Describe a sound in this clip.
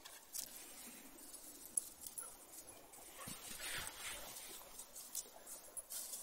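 A dog rustles through undergrowth.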